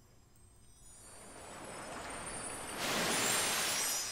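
A magical shimmer swells up and rings out brightly.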